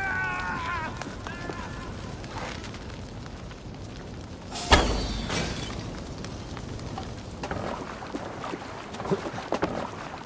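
Fire crackles and roars nearby.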